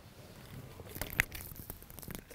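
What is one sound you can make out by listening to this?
A microphone knocks and rustles as it is handed over.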